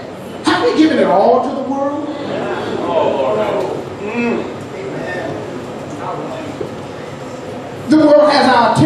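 A middle-aged man speaks with animation through a microphone in an echoing room.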